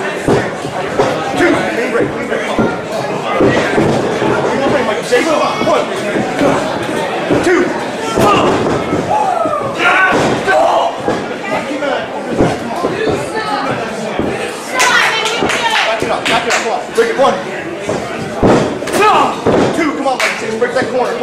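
Bodies thud heavily against ropes and a padded floor.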